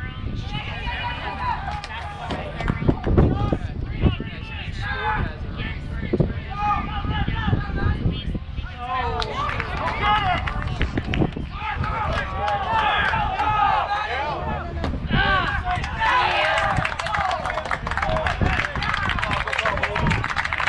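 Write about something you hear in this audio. Young players shout from across an open field.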